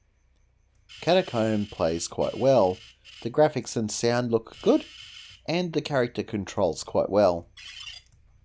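Electronic game tunes warble and beep from a small laptop speaker.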